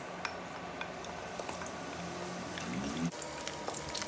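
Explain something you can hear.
Garlic sizzles in hot oil.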